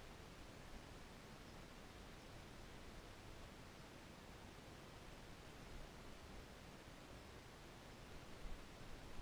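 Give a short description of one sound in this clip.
Liquid gurgles as it is poured from a can into a tank.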